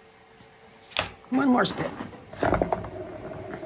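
A painted board knocks and scrapes on a turntable.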